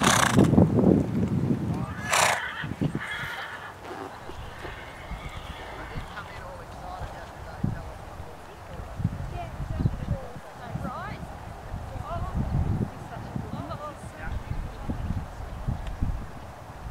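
Wind blows across an open field outdoors.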